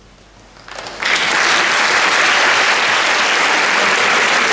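An audience bursts into loud applause.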